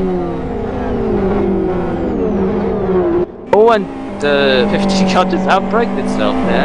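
Racing car engines roar at high revs, with pitch rising and falling through gear changes.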